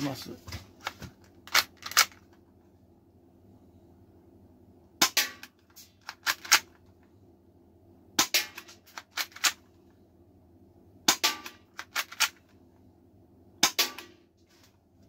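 A pistol's slide racks and clicks with sharp metallic snaps.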